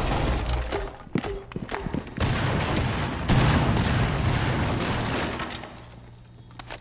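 Fire roars and crackles.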